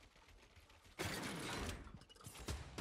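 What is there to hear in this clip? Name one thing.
A rifle fires with a loud, echoing blast.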